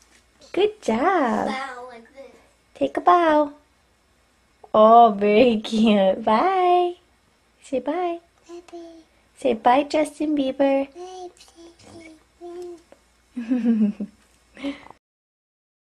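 A little girl talks and babbles in a high voice close by.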